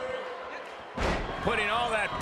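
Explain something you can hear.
A body slams hard onto a wrestling mat with a heavy thud.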